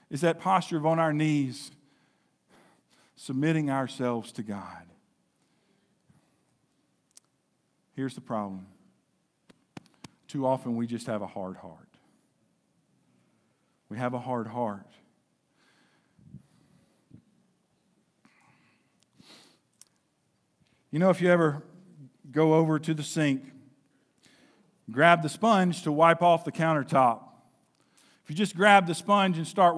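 A man speaks with animation into a microphone, pausing often.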